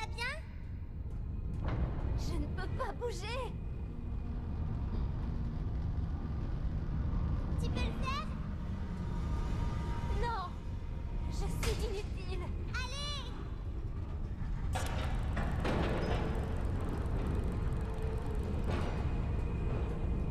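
Heavy machinery rumbles deeply and steadily in a large echoing hall.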